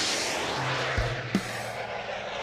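An energy beam whooshes through the air with a sharp burst.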